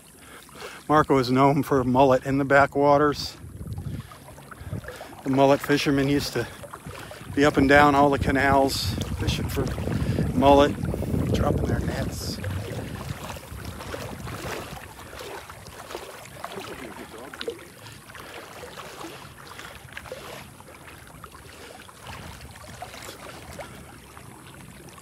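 Small waves lap gently against the shore.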